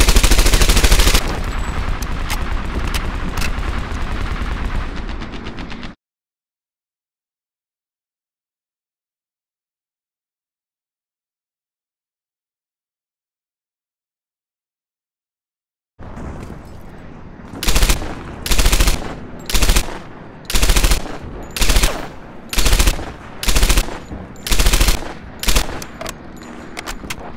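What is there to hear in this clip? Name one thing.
A submachine gun fires rapid bursts, loud and close.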